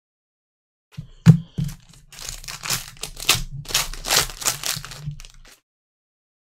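Plastic wrapping crinkles and rustles as a card pack is torn open.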